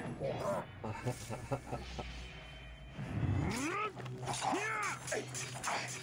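Metal blades clash and strike in a fight.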